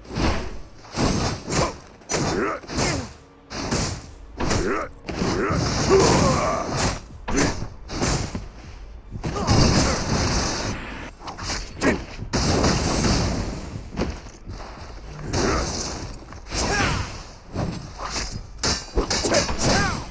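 Swords slash and clang in a fast fight.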